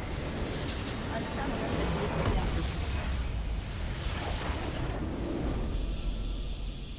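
A game's crystal structure explodes with a loud boom.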